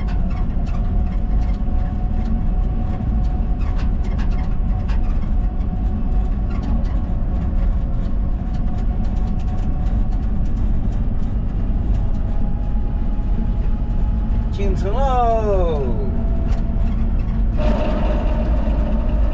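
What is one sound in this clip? A vehicle engine hums steadily as it drives along a road.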